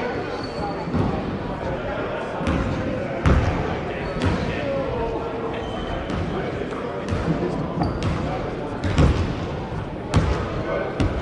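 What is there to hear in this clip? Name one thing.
A basketball bounces on a wooden floor, echoing through a large hall.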